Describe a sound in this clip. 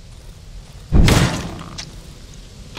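A loud crashing blow lands and rings out briefly.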